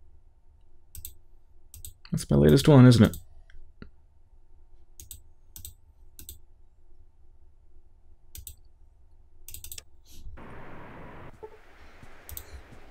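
Soft game menu clicks sound now and then.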